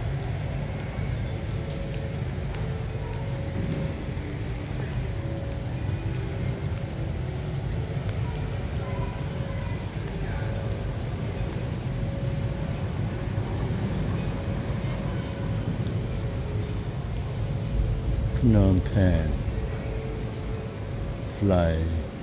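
A large echoing hall hums with a steady murmur of distant voices.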